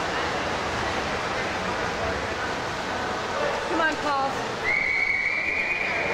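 Swimmers splash through the water in a large echoing hall.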